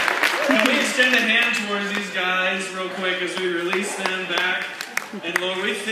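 A group of children sings together.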